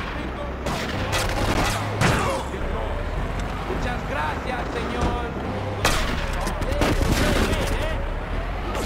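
A heavy army truck's engine rumbles.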